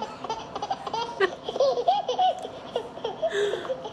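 A young woman laughs up close.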